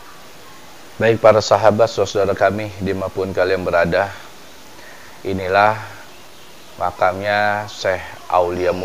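A middle-aged man speaks calmly and close by, in a small echoing room.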